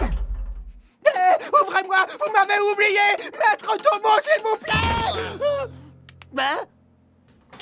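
A cartoon man shouts and rants with animation.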